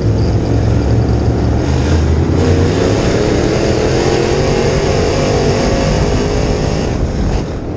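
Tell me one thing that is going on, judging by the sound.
Tyres rumble and spray over loose dirt.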